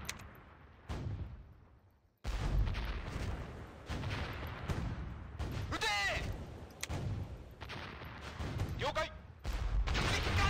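Heavy guns boom and shells explode in repeated bursts.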